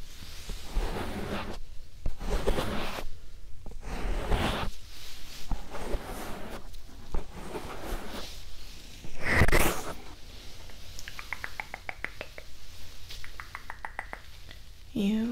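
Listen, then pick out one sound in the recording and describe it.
A young woman whispers softly, very close to the microphone.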